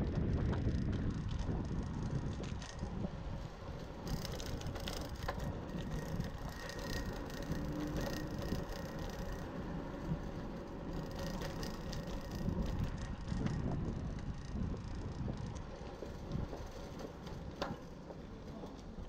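Wind rushes and rumbles past as the bicycle rides along.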